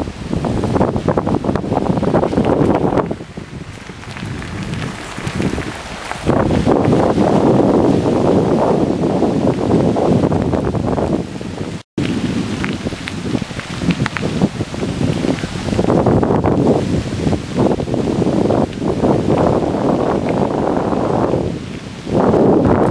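Bicycle tyres crunch over a gravel path.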